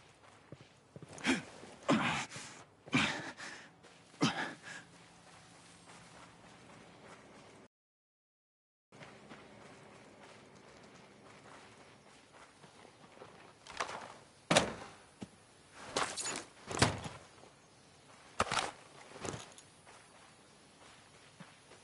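Footsteps crunch quickly on dirt and grass.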